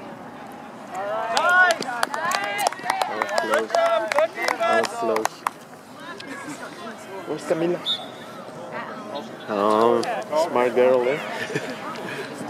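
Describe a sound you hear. Young players call out to each other across an open field.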